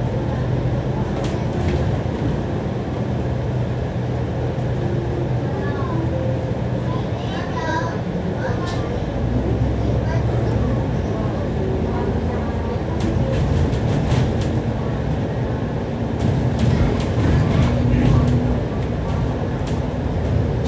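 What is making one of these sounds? A diesel double-decker bus engine drones as the bus cruises along a highway.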